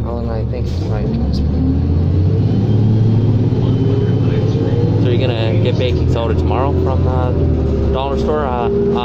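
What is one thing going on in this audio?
A bus engine whines, rising in pitch as the bus speeds up.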